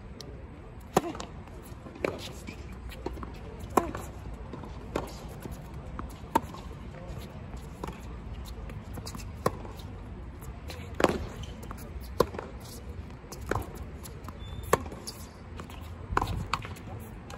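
Tennis balls are struck with rackets in a rally, with sharp pops.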